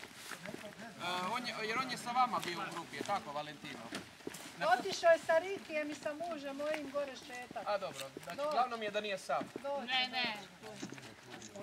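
Men talk with animation outdoors.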